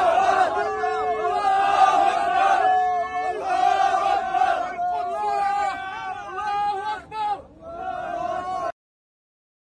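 Young men cheer and shout with excitement.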